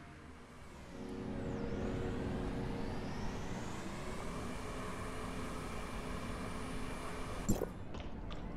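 A motorbike engine hums and revs up.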